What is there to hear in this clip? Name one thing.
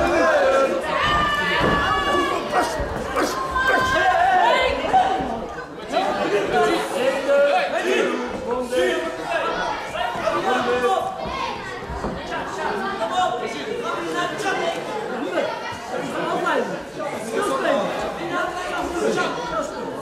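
A crowd of men and women chatters and shouts in a large echoing hall.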